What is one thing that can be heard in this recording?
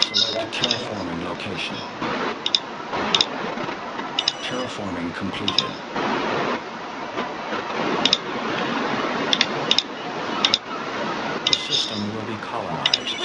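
Short electronic clicks and chirps sound as menus open and close.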